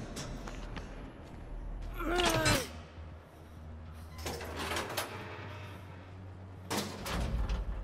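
A metal lever clanks as it is pulled.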